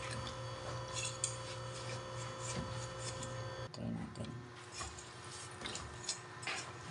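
Wet cloth squelches as it is stirred in water.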